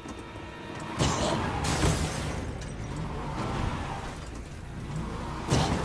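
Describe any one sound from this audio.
A car engine starts and revs.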